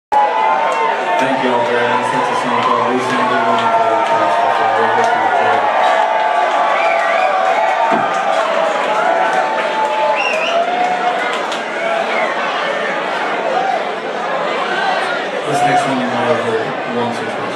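A band plays loud live music in a large echoing hall.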